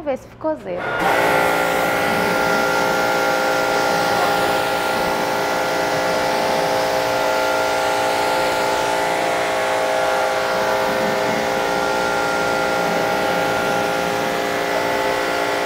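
A pressure washer sprays water hard against a car wheel with a steady loud hiss.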